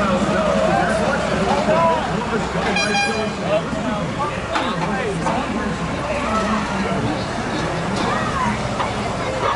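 A crowd of young men cheers and shouts outdoors.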